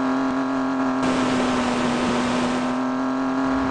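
Water splashes as a car drives through it.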